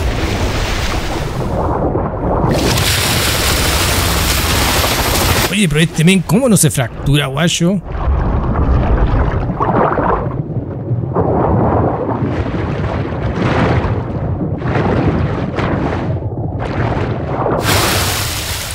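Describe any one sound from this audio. Water rushes and churns underwater.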